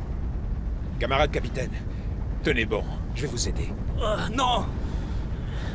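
A man groans and speaks weakly up close.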